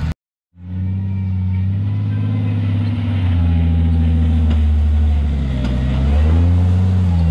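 Tyres scrape and crunch over rock.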